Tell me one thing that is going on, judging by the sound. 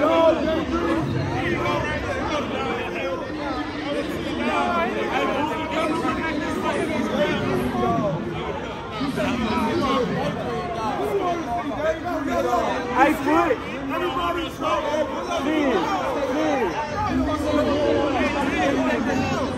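A large crowd of men and women talks and shouts excitedly at close range.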